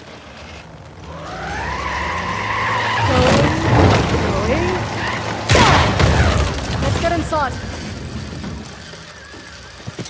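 A car engine revs and roars as a vehicle drives off.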